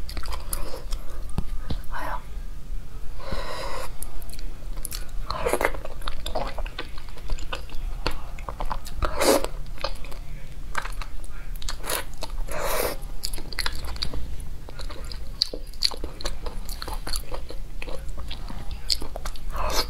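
A young woman chews food noisily close to a microphone.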